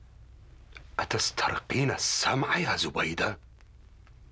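A middle-aged man speaks in a deep, firm voice close by.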